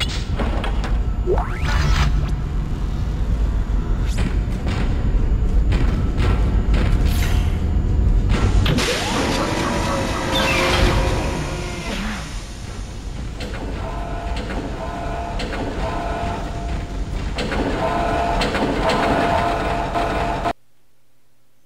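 Heavy machinery rumbles and hums loudly.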